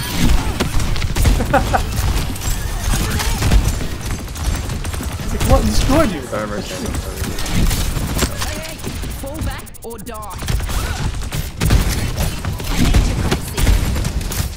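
Gunfire from a video game rattles in quick bursts.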